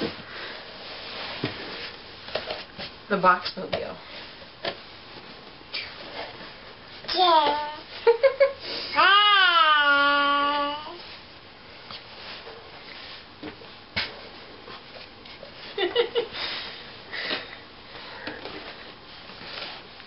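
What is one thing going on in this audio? A cardboard box scrapes and thumps as a baby shifts inside.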